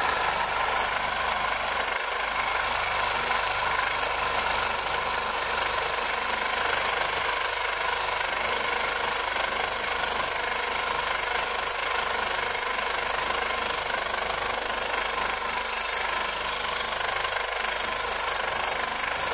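A reciprocating saw buzzes loudly as its blade cuts through metal.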